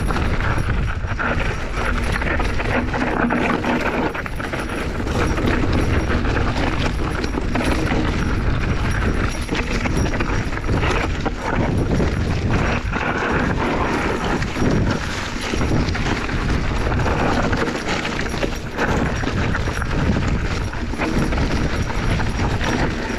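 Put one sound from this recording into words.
Wind buffets loudly across a microphone outdoors.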